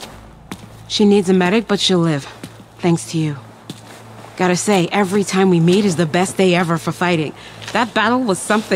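A second woman speaks with animation and a light laugh.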